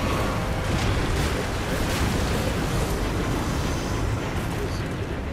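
A deep, heavy rumble roars steadily.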